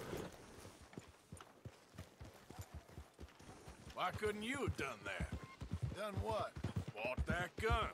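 Horse hooves clop on a muddy road.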